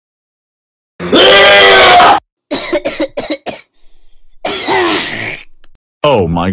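A young girl vomits loudly.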